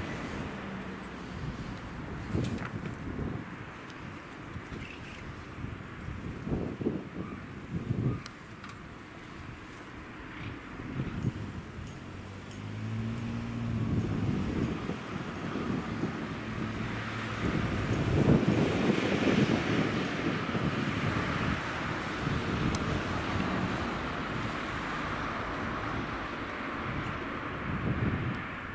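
A diesel train engine idles with a low, steady rumble close by.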